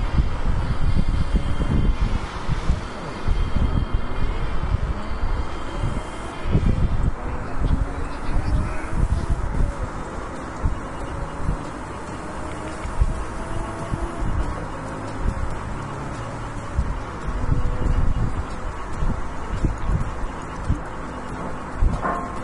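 A sports car engine roars and revs as it speeds up.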